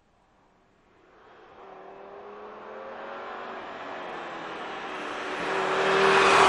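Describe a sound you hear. A car engine approaches from a distance, growing steadily louder.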